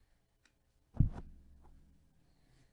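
A card is set down with a soft thump.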